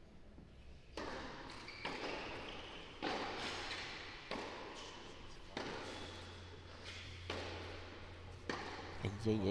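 Rackets strike a tennis ball back and forth in a steady rally.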